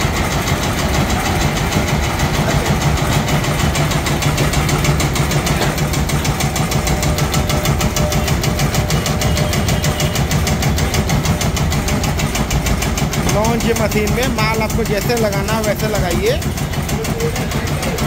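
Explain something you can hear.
A machine runs with a steady, fast rattling hum.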